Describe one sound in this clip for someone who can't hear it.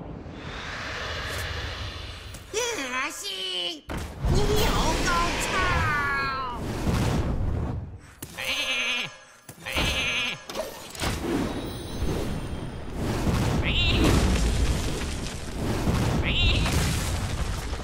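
Game cards whoosh and land with magical chimes and impacts.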